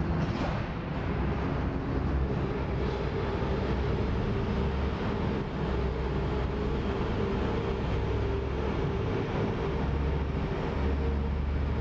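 An ice resurfacing machine's engine hums steadily.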